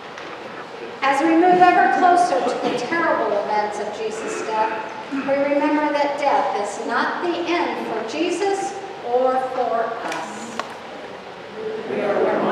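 A woman reads aloud in a calm voice in a reverberant hall.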